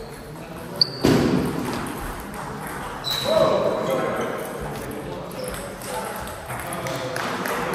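Men talk and call out loudly in a large echoing hall.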